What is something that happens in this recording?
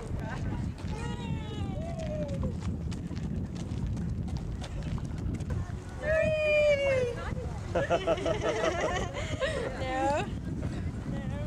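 Women talk and call out cheerfully nearby.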